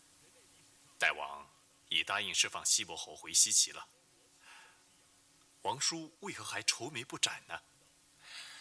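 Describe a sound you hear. A man speaks urgently and with animation, close by.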